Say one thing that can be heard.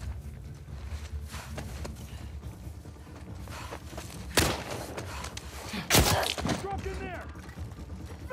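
Footsteps crunch through grass and loose rubble.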